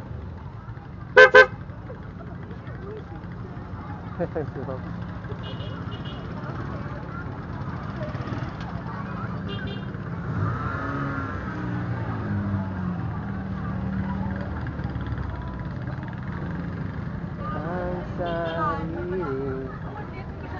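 A motorcycle engine idles and rumbles close by.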